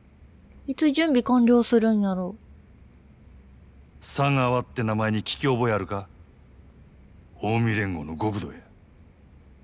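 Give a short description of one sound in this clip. A man speaks calmly in short, low phrases.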